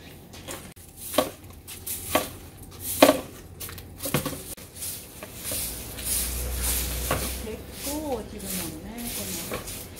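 A broom scratches and sweeps over the ground.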